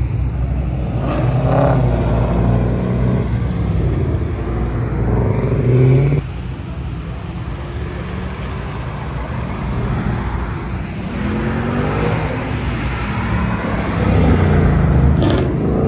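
A sports car accelerates hard and roars past.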